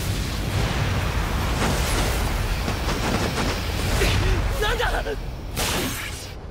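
A strong rush of wind roars.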